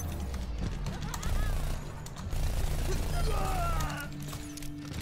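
Gunfire crackles loudly in a video game.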